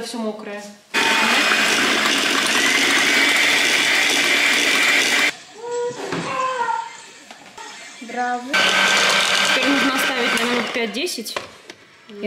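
An electric hand mixer whirs loudly in a bowl.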